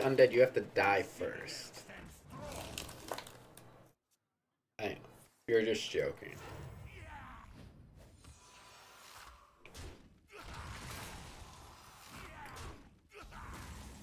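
A card game plays chiming and bursting sound effects.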